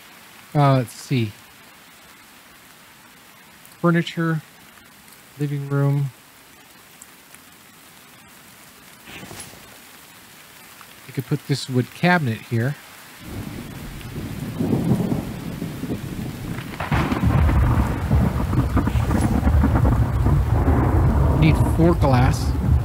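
An elderly man speaks calmly and close into a microphone.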